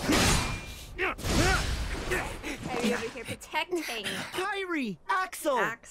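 A young woman talks and laughs excitedly into a microphone.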